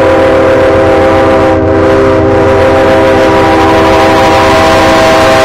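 A diesel locomotive engine rumbles as a train approaches.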